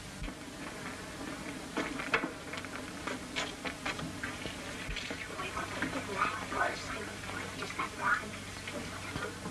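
Dishes clink and rattle softly.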